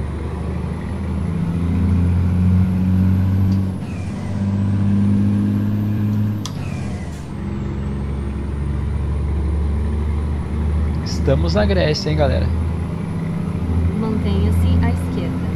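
A truck engine hums low and steady, rising and falling as it drives.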